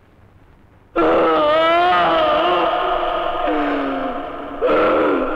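A man screams loudly in anguish.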